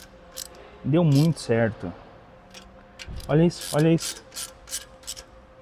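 A ratchet wrench clicks against metal bolts.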